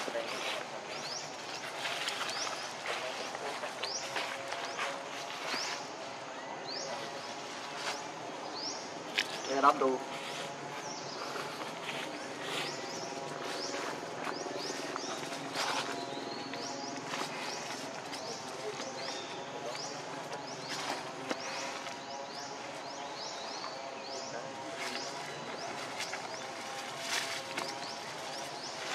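Dry leaves rustle and crackle as monkeys move over them.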